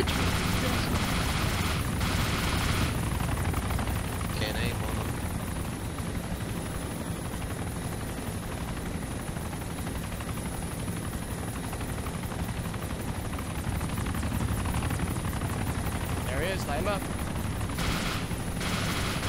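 Helicopter rotors thump steadily and loudly.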